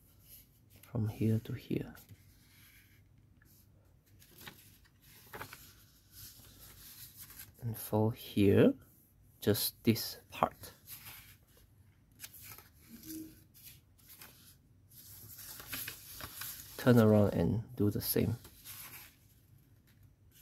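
Paper rustles and crinkles as it is folded and creased.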